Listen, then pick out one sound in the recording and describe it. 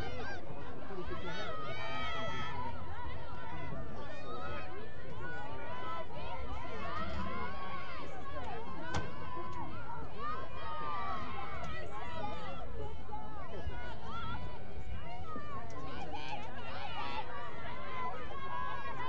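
Young women shout and call to each other outdoors.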